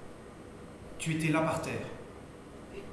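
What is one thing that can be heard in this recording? A man speaks in short phrases.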